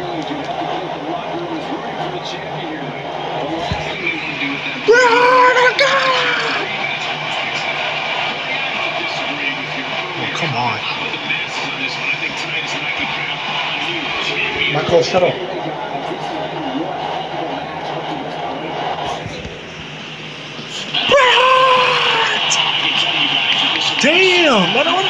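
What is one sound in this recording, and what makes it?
A crowd cheers and roars steadily through a television speaker.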